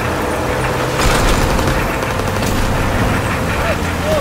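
A vehicle crashes into a truck with a loud bang.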